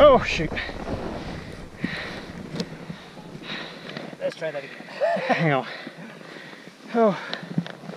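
Skis hiss over snow as a skier glides downhill.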